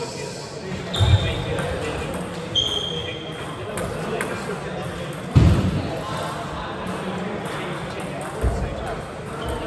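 Shoes squeak and thud on a wooden floor.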